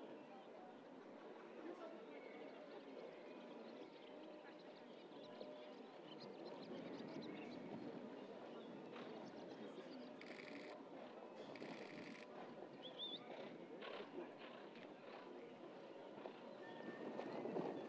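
A horse canters on grass with dull hoofbeats.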